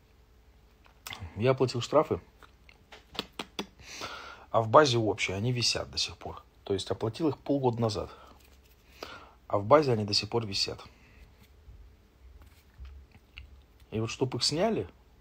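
A young man talks with animation close to a phone microphone, in short bursts with pauses.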